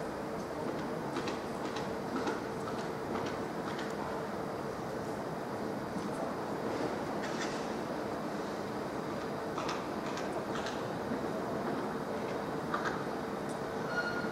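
Train wheels click and clatter on rail joints.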